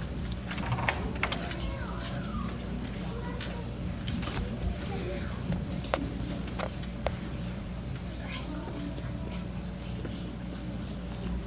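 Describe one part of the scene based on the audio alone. Children strum ukuleles in a hall.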